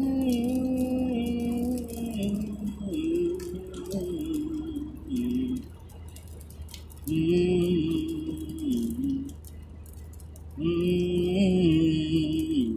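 Raindrops tap on a windshield.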